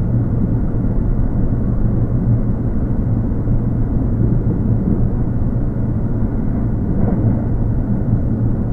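An electric train rumbles slowly along the tracks.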